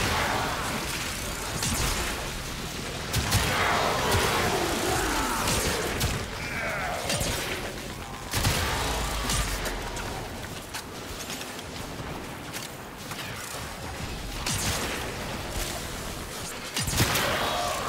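Gunfire and energy blasts crackle in bursts.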